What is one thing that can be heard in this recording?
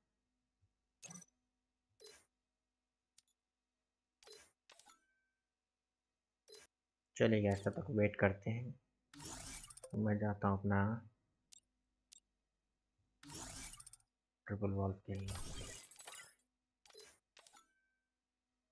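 Short electronic menu clicks sound now and then.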